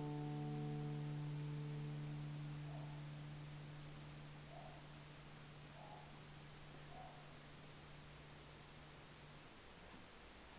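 An acoustic guitar chord rings out and slowly fades.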